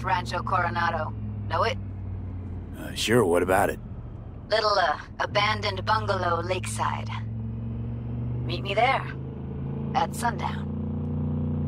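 A young woman speaks calmly over a phone call.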